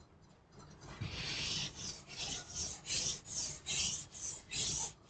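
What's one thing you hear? A felt eraser rubs back and forth across a chalkboard in quick strokes.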